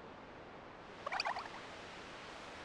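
A young woman's animated cartoon voice exclaims cheerfully.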